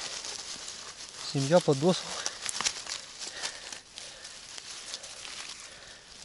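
Dry grass and leaves rustle and crackle under a hand.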